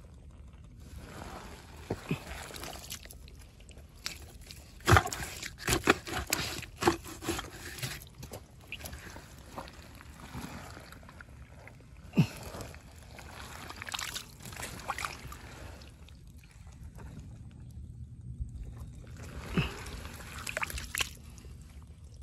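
An animal digs and scrapes in wet mud close by.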